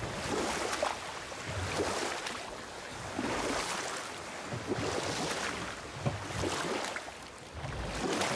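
Oars splash rhythmically in water as a boat is rowed.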